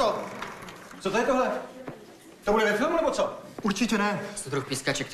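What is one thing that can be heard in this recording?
A man speaks loudly and angrily nearby.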